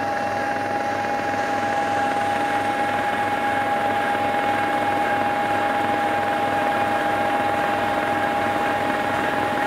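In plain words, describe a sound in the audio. A large snow blower engine roars steadily.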